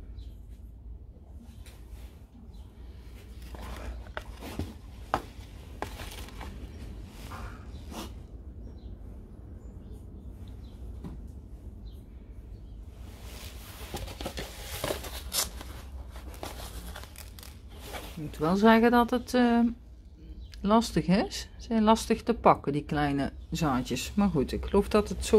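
Fingers rub seeds softly onto loose compost.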